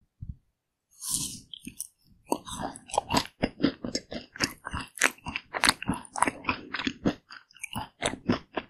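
A woman chews with wet, crunchy sounds close to a microphone.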